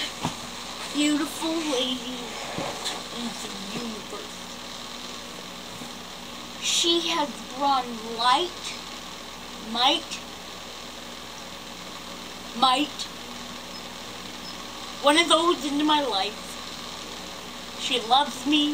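A young boy speaks close by, with playful animation.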